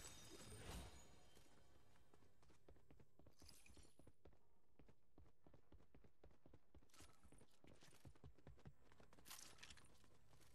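Footsteps patter quickly on a wooden floor.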